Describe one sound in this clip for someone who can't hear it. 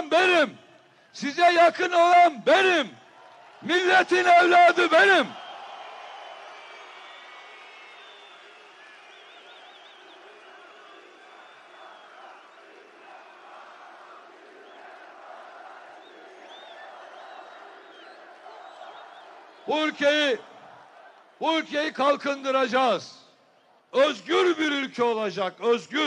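A man shouts forcefully into a microphone over loudspeakers.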